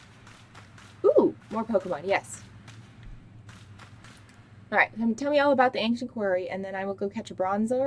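A young woman talks casually and closely into a microphone.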